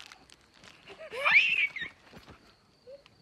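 A man laughs loudly close by.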